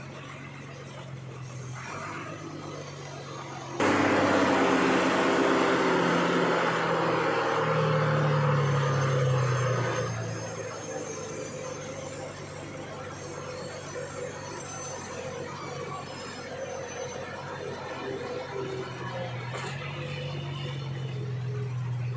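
A heavy diesel truck engine labours under load.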